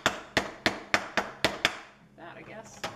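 A hammer taps sharply on wood several times.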